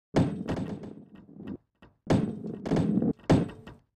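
Wooden crates clatter and tumble as a ball smashes into them.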